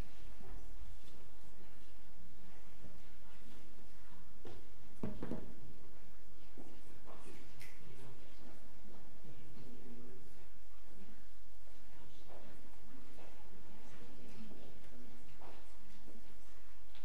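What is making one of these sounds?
A crowd of people murmurs quietly in a large room.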